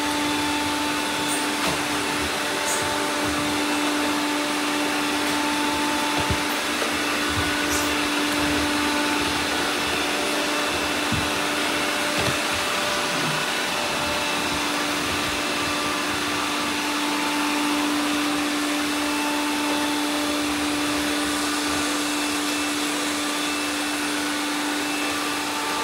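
Several robot vacuums whir and hum steadily.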